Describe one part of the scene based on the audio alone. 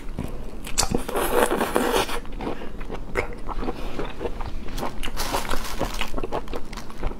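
A young woman slurps soup close to a microphone.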